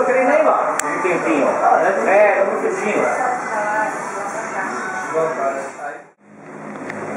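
Several adults chat nearby in lively voices.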